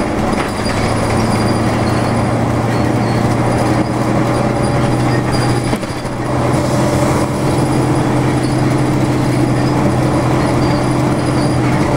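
A vehicle engine hums steadily while driving along a road.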